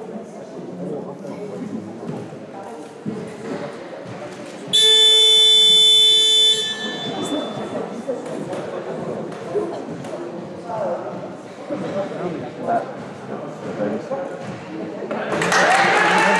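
A man talks calmly to a group in an echoing hall.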